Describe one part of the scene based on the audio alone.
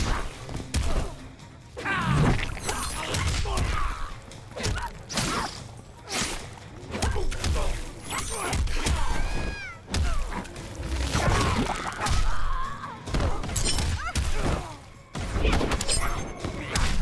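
A fighter grunts and shouts with effort.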